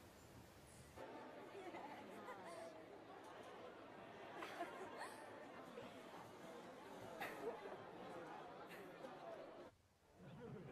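Young women laugh and chatter in a busy room.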